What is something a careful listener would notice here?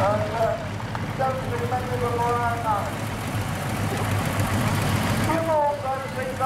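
A tractor engine rumbles and chugs steadily nearby.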